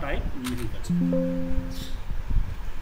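A computer error chime sounds once.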